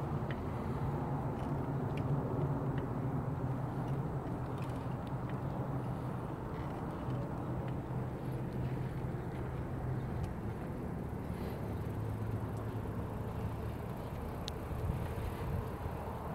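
Wind blusters steadily across the microphone outdoors.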